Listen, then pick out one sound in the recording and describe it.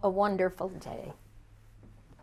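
An older woman speaks calmly, close by.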